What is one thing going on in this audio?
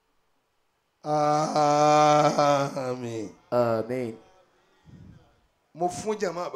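A man chants in a long, sung voice through a microphone and loudspeakers.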